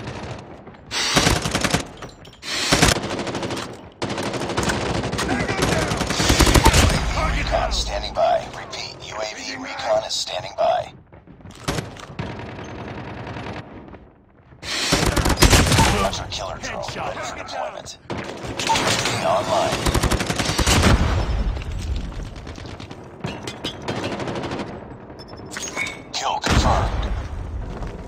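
Rapid game gunfire rattles in loud bursts.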